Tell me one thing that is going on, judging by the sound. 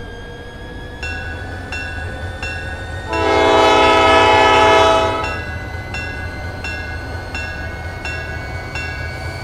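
Train wheels click steadily over rail joints, coming faster and faster.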